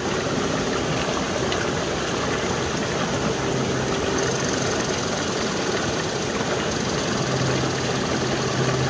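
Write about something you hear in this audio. A small stream trickles and gurgles over rocks.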